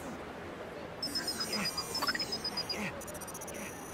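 Electronic chimes and beeps play as a game menu opens.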